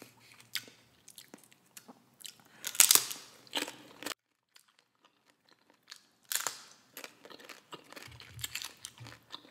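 A spoon scrapes and stirs thick dip in a paper cup close to a microphone.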